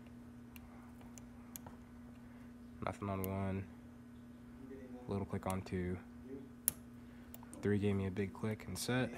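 Small metal lock parts click and tick softly.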